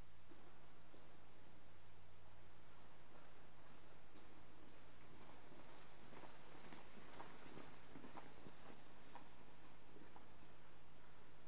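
Footsteps echo faintly through a large, reverberant hall.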